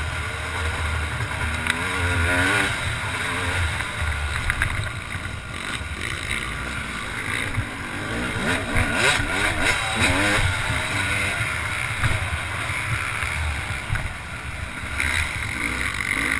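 A dirt bike engine roars close by, revving up and down as it races.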